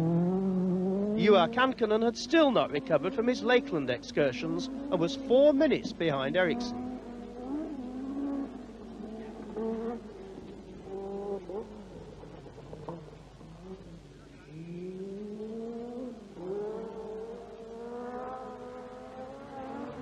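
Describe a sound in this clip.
A rally car engine revs hard and shifts through gears as the car races past.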